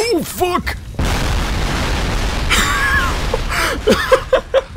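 A fiery explosion roars and rumbles.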